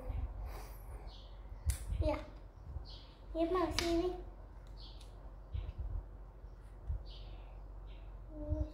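Small plastic toy pieces click and tap together.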